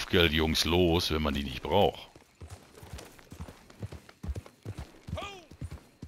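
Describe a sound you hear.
A horse's hooves thud on soft ground at a trot.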